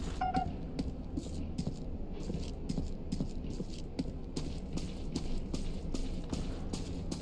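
Footsteps tread quickly and steadily over hard ground.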